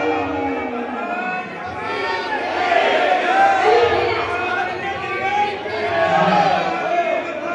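A crowd of men and women chants and sings together close by.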